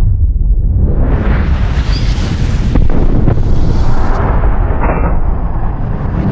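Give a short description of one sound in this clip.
A revolver fires with a loud, booming blast.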